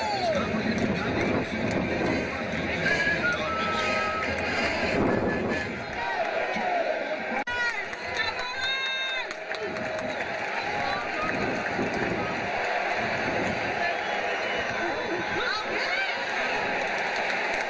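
A large stadium crowd cheers and roars loudly all around.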